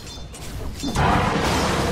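A burst of spell impacts blasts loudly.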